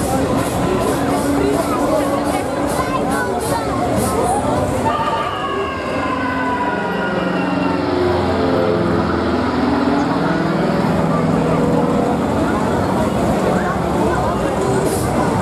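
Riders scream on a swinging fairground ride.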